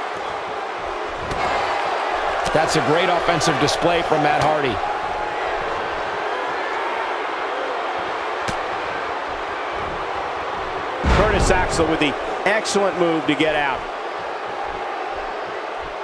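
A large crowd murmurs and cheers in a big arena.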